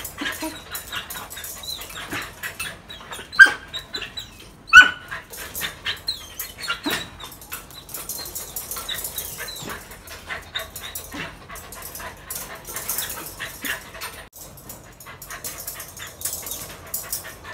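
A metal pen fence rattles as a dog jumps against it.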